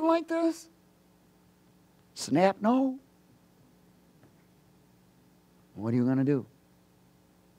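A man speaks with animation through a microphone, in short bursts with pauses.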